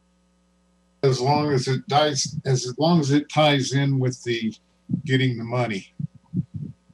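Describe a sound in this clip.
An older man speaks in a deep voice over an online call.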